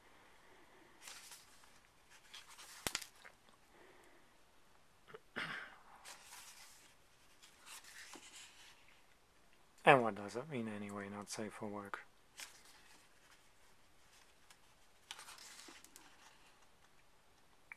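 Paper pages rustle as they are turned by hand.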